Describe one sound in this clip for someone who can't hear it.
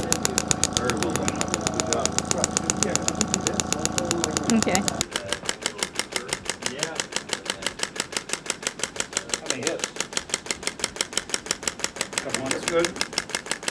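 A handheld massage device taps rapidly and steadily.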